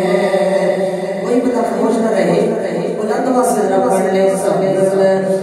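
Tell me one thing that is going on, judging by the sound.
A man chants passionately through a microphone and loudspeakers.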